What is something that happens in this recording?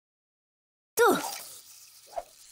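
A fishing rod swishes through the air as it is cast.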